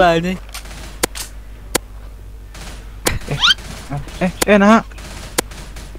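Gunshots ring out one at a time.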